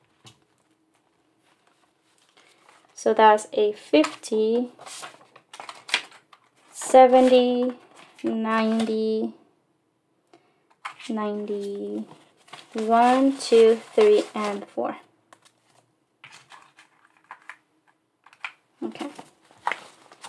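Paper bills rustle and flick as they are counted by hand.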